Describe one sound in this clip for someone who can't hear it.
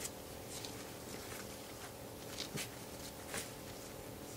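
Gloved hands press and pat soft soil.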